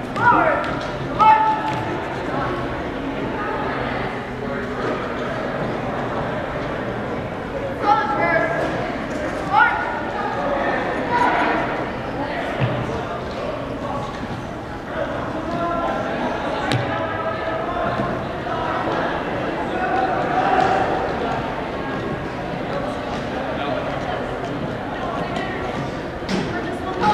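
Boots step in unison on a wooden floor.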